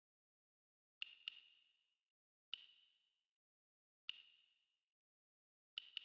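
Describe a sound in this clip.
A short, bright menu chime rings out several times, each ring fading quickly.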